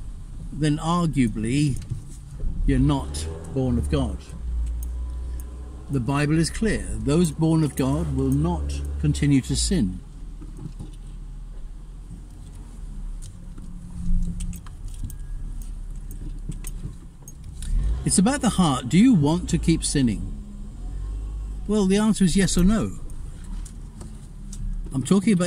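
A car engine rumbles low and steady from inside the car.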